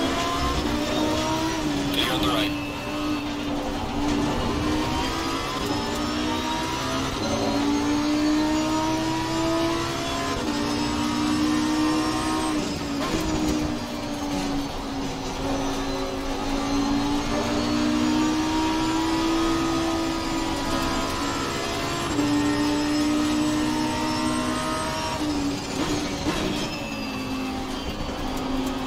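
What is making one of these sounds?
A racing car engine roars steadily, rising in pitch as it speeds up and dropping sharply at each gear change.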